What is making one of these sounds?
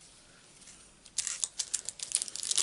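A plastic sheet rustles and crinkles as a hand handles it.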